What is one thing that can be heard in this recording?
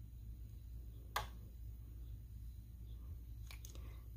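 A small plastic cap twists off a tube with a soft click.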